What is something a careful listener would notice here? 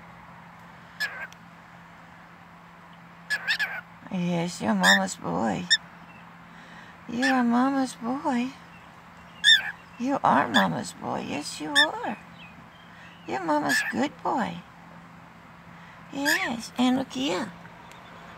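A cockatiel chirps and whistles in short warbling bursts close by.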